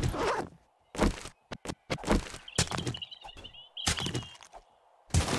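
Wooden blows thud against a crate.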